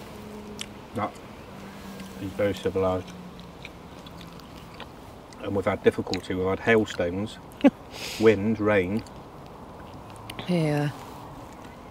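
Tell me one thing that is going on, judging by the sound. A middle-aged man talks casually and close by.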